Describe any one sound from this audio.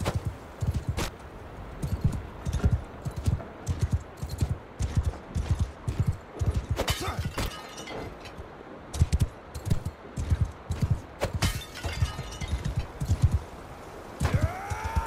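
A horse gallops with heavy, rapid hoofbeats thudding on dirt.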